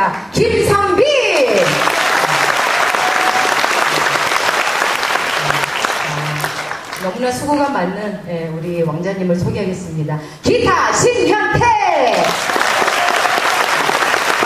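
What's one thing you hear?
A crowd applauds and cheers in a large hall.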